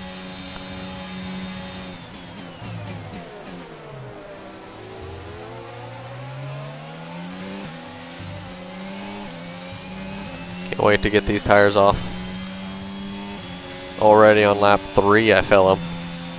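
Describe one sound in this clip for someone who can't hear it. A racing car engine whines, dropping in pitch under braking and rising as it speeds up through the gears.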